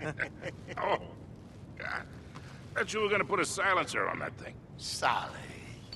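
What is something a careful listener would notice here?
A middle-aged man speaks in a weary, rough voice.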